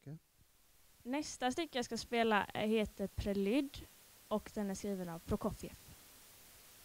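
A young woman answers into a microphone.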